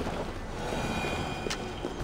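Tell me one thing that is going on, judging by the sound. A fire crackles softly nearby.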